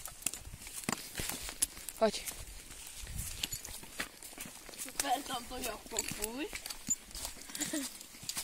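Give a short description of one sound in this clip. Hooves crunch on dry leaves.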